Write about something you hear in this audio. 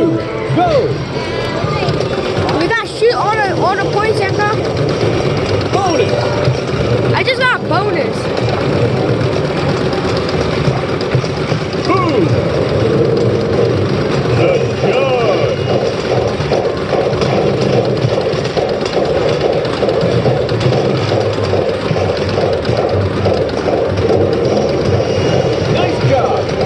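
Many arcade machines chime and beep around a busy, echoing hall.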